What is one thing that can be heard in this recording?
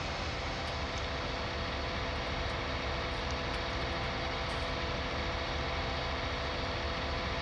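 A heavy machine's diesel engine rumbles steadily.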